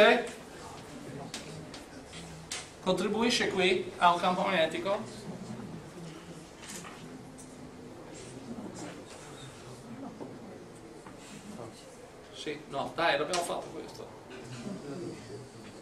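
A middle-aged man speaks calmly, explaining.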